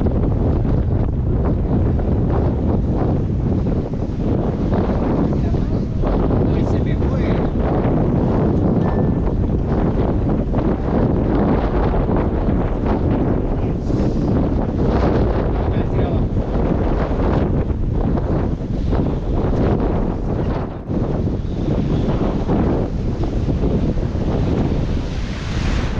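Strong wind buffets loudly outdoors.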